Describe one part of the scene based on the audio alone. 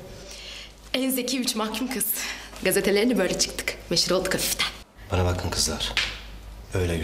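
A young woman speaks brightly and cheerfully close by.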